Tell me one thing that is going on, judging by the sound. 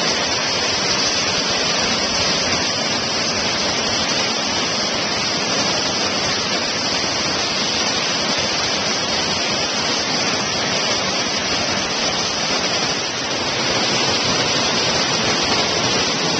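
A large waterfall roars close by.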